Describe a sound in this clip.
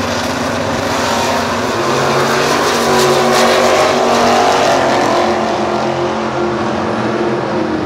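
V8 muscle cars launch and roar away at full throttle.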